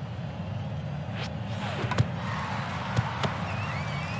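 A pitched ball smacks into a catcher's mitt.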